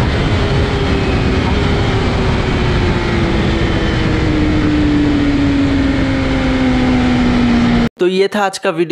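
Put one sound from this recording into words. Wind roars loudly past a fast-moving rider.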